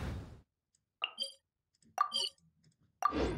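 Soft menu chimes ring out.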